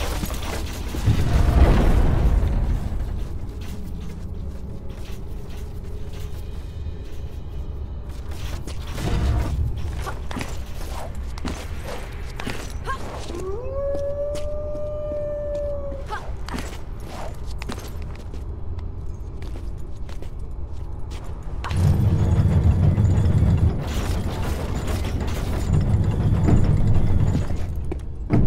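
A heavy stone gate rumbles deeply.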